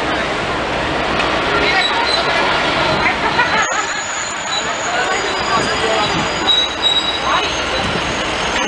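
A city bus engine rumbles as the bus drives past.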